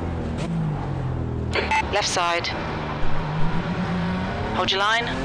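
A racing car engine drones and shifts pitch.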